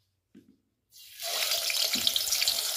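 Food sizzles loudly as it drops into hot oil.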